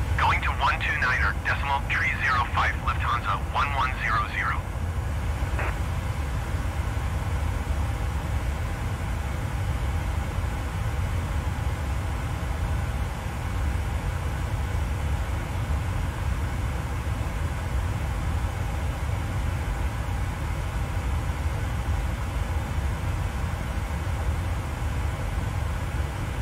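Jet engines drone steadily with a low rumble.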